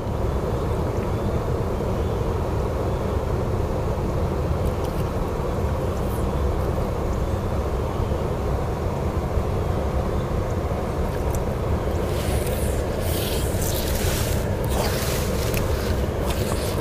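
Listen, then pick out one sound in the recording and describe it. A small boat motor hums steadily.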